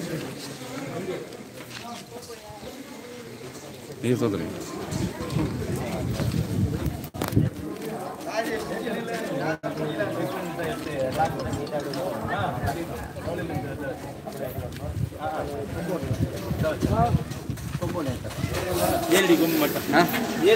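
Several men talk and murmur nearby, outdoors.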